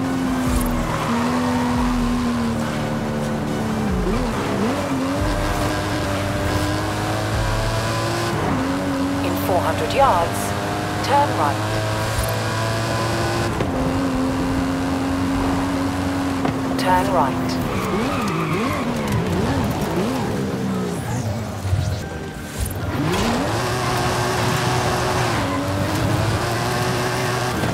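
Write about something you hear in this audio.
A sports car engine roars, revving up and dropping in pitch with each gear change.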